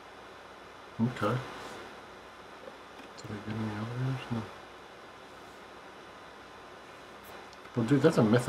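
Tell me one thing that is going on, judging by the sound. A young man talks casually close to a microphone.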